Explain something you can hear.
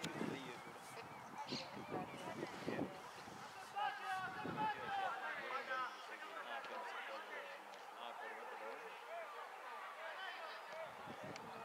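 Young men shout and call to each other across an open field, some way off.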